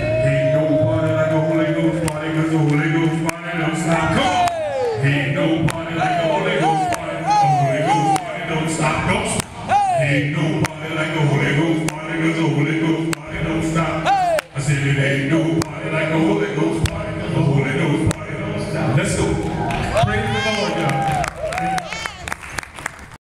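Men sing together into microphones over loudspeakers in a large echoing hall.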